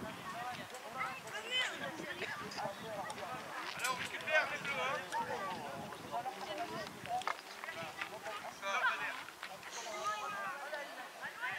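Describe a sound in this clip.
Young boys shout and call out to each other across an open field.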